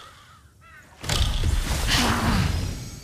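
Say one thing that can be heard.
Deep rumbling booms sound during a battle.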